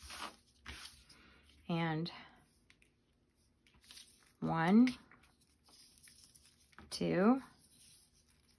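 Paper rustles softly as a card is handled.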